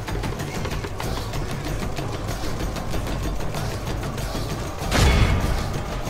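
Men shout and cry out in the noise of battle.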